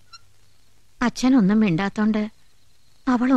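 A middle-aged woman speaks sorrowfully, close by.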